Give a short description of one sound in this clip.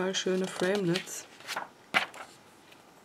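A glossy magazine page rustles as it is turned.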